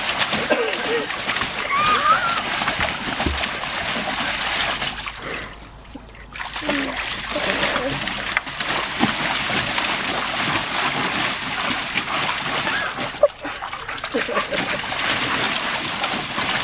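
Water splashes and sloshes as a dog stomps in a paddling pool.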